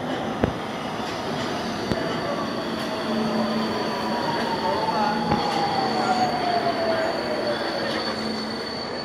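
Train brakes whine with a falling pitch as the train slows to a stop.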